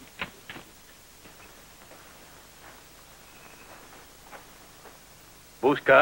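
Hooves clop slowly on dirt as a horse walks up.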